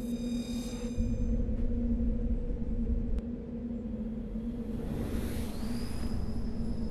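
A spaceship's engine rumbles low and whooshes past.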